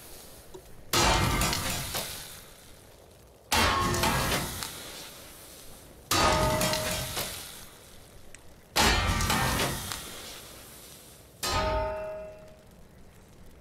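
A game's magical effect bursts out loudly in a rushing, ringing surge, again and again, each time fading away.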